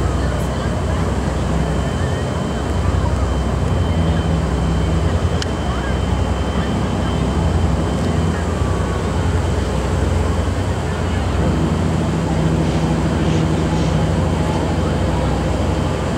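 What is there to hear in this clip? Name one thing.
A towboat engine rumbles low and steady across the water.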